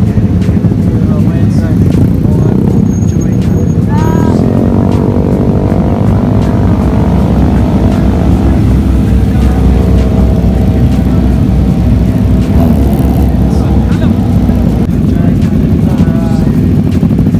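Motorcycle engines rumble loudly close by.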